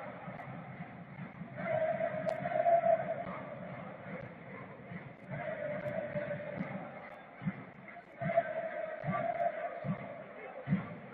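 A stadium crowd chants loudly from the stands, in waves that rise and fall.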